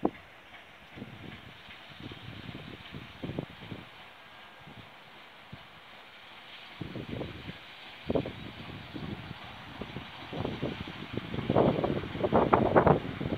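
A diesel locomotive engine rumbles and grows louder as it approaches.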